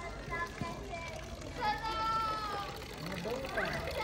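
Water trickles into a stone fountain trough.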